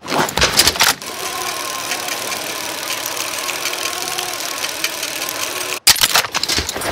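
A zipline pulley whirs steadily while sliding along a cable.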